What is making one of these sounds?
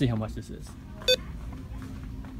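A price scanner beeps once.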